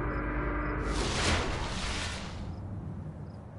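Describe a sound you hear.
A bright shimmering whoosh rises and fades.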